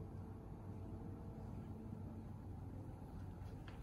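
A piano plays softly.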